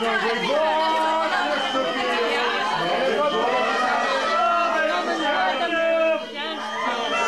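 A group of adults talk and call out over each other close by.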